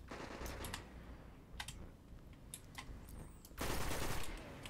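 A rifle fires a quick series of sharp shots.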